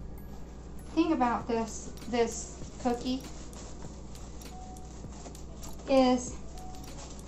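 A woman speaks in short bursts close by.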